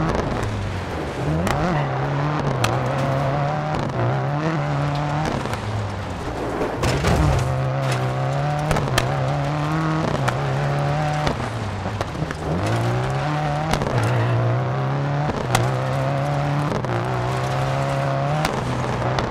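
A rally car engine revs hard and shifts through the gears.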